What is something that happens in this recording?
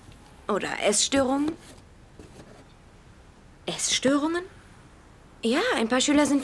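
A teenage girl speaks nearby in short, earnest phrases.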